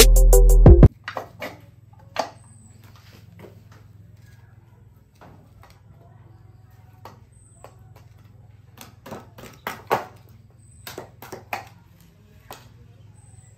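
Small objects knock and tap against each other nearby.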